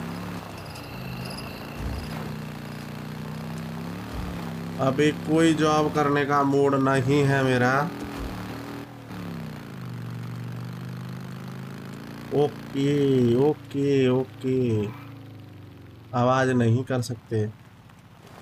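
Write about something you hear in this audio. A motorcycle engine rumbles steadily as the bike rides along.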